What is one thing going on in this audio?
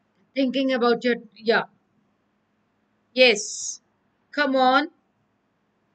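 A woman speaks in short phrases into a microphone, with pauses between them.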